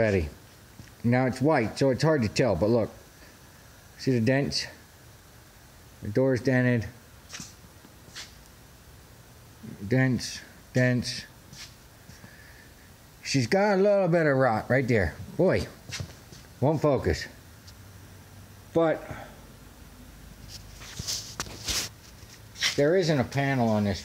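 A man speaks calmly, close by, in short bursts with pauses.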